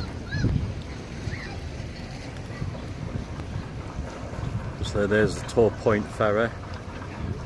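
Wind blows across an open waterfront and rumbles against the microphone.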